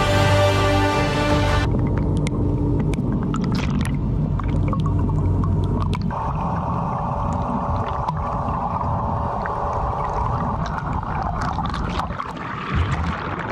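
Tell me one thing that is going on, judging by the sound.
Water splashes at the surface.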